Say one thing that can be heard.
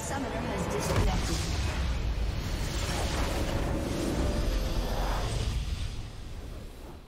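A large blast booms and rumbles in a game.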